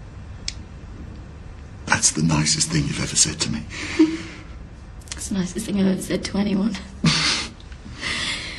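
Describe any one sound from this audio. A man speaks softly and warmly, close by.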